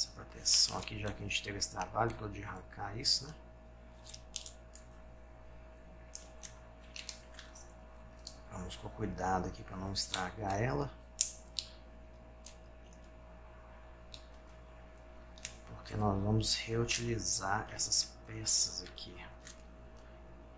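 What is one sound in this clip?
Small plastic parts click and rattle in someone's hands, close by.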